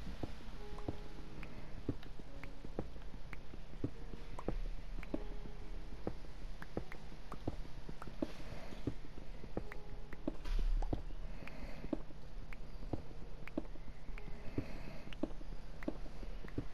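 A pickaxe taps steadily at stone with rapid clicks.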